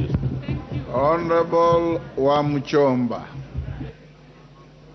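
An older man speaks firmly through a microphone.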